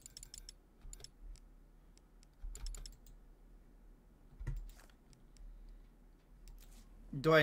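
Menu selection clicks sound in quick, bright ticks.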